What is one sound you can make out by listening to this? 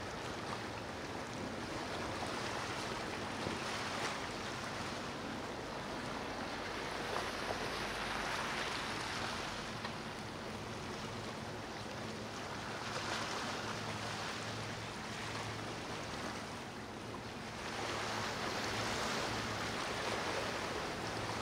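A motor yacht's engines roar as it speeds across the water.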